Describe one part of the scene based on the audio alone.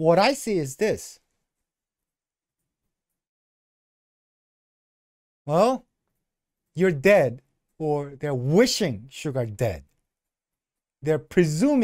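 A middle-aged man talks with animation into a close microphone, in short bursts with pauses.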